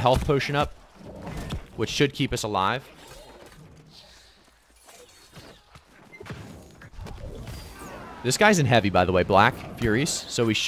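Weapons clash and magic blasts burst in a fight.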